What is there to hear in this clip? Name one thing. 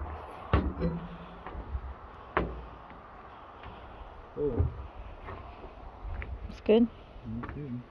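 Footsteps clank on a metal deck.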